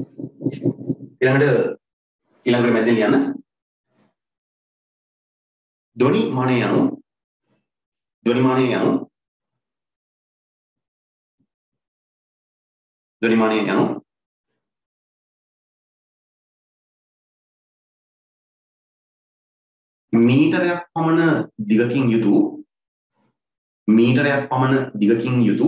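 A young man speaks calmly in short bursts, close to a microphone.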